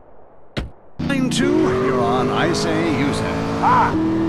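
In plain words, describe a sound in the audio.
A car engine starts and revs loudly.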